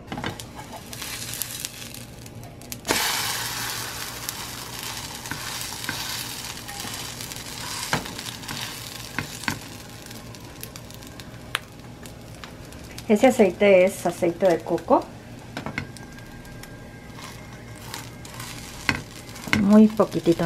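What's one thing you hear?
A spatula scrapes and taps against a frying pan.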